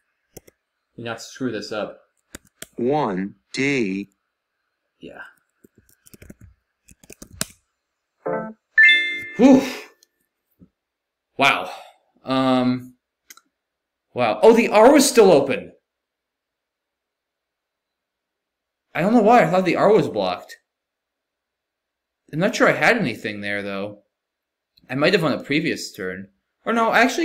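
A young man talks in bursts close to a microphone, calmly and with animation.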